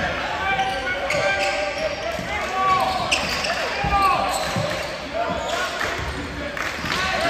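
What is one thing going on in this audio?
Sneakers squeak sharply on a hardwood court in an echoing gym.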